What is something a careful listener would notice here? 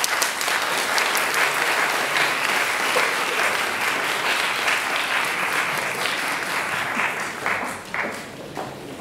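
An audience applauds in a large hall, then the clapping fades.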